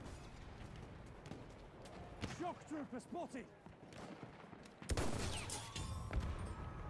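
Explosions boom in the distance.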